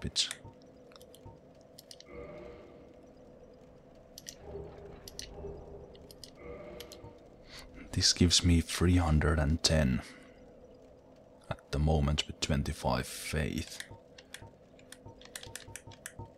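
Short menu clicks tick softly now and then.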